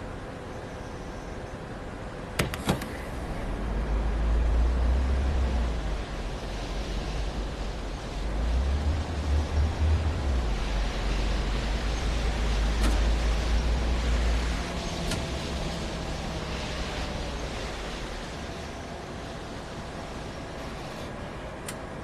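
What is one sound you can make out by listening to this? Tyres hiss on a wet road.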